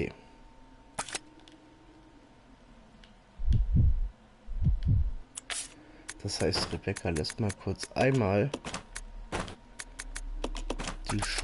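Short game menu blips sound as options are picked.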